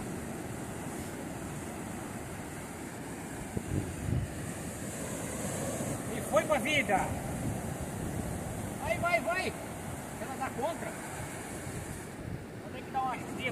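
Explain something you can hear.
Waves wash steadily onto the shore.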